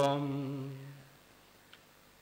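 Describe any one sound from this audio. A man sings a long chanted note through a loudspeaker, which echoes and fades away.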